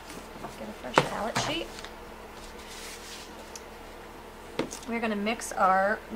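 A sheet of paper rustles as it is laid down on a board.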